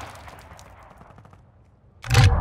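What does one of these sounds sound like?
A rifle fires a quick burst of gunshots.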